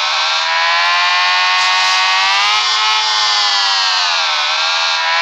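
A motorcycle engine whines steadily, its pitch rising and falling.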